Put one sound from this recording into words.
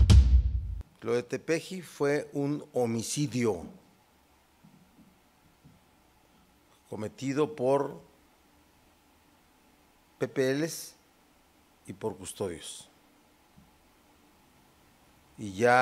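A man speaks slowly into a microphone, pausing between phrases.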